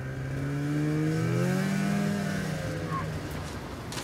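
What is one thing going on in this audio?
A snowmobile engine revs and passes by.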